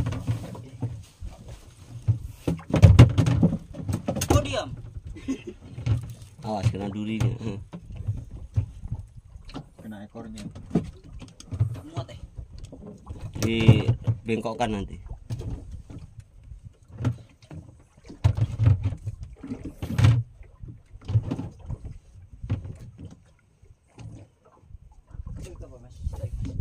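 Waves lap against the side of a small boat.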